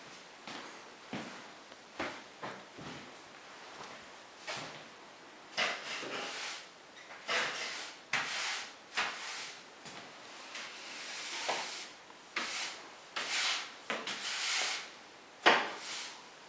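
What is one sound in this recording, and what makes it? A stork shuffles its feet on a hard floor.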